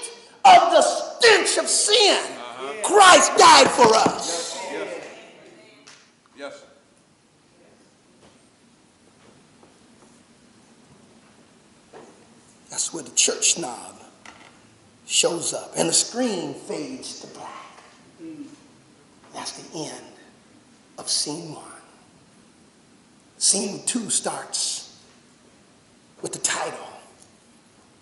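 A man preaches loudly and with animation through a microphone in an echoing hall, pausing between phrases.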